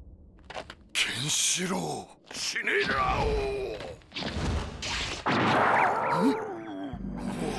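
A man growls and yells fiercely.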